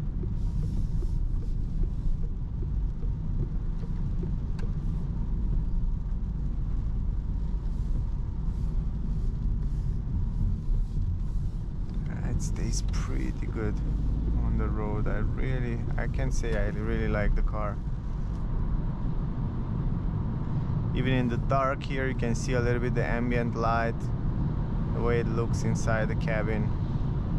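Tyres roll over a wet road with a low, steady rumble.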